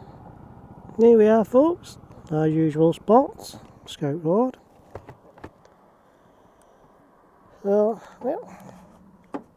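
A man speaks in short bursts, close to a helmet microphone.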